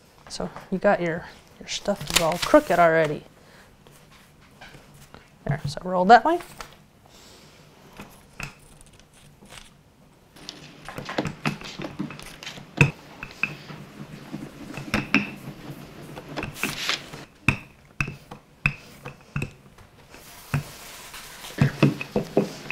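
A rolling pin rolls and thumps on dough.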